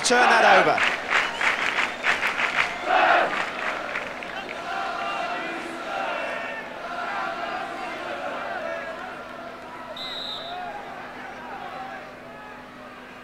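A large crowd roars and chants loudly in an open stadium, then settles to a murmur.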